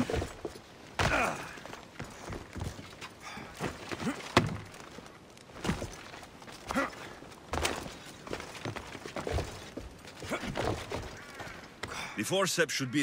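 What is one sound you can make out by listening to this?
Quick footsteps and scraping thuds sound as someone climbs over stone and wooden planks.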